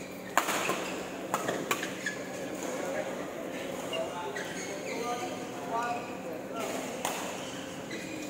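Young men talk casually in a large echoing hall.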